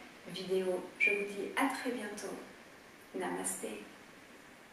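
A young woman speaks calmly and softly, close to a microphone.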